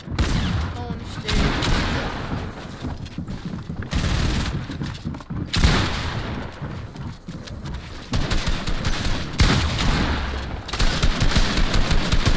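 Rapid knocks and thuds of structures being built sound in quick bursts.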